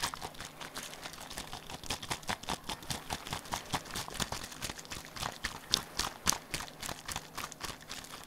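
A hand taps and scratches rapidly on a plastic bottle close up.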